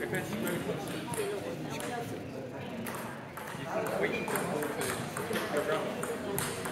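A table tennis ball clicks sharply off paddles and the table in a large echoing hall.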